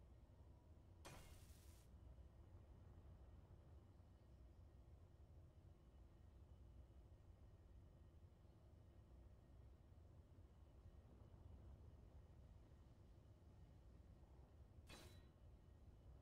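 A jetpack thruster hisses in short bursts.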